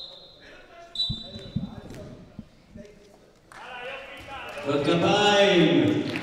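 A man shouts loudly in a large echoing hall.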